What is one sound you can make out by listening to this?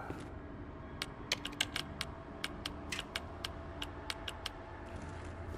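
Keypad buttons beep as a code is entered.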